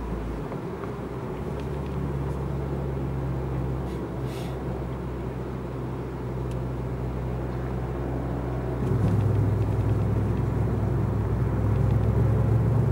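Tyres roll along the road, growing louder and rougher on cobblestones.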